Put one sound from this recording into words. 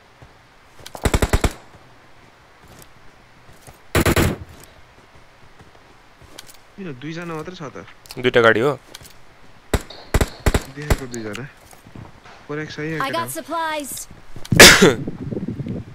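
Rifle shots crack loudly, a few seconds apart.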